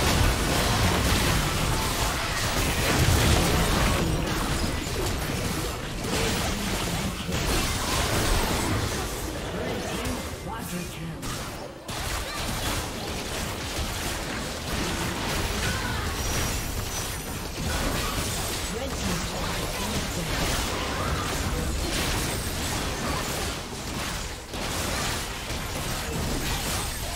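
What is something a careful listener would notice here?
Spell effects crackle and burst in a video game battle.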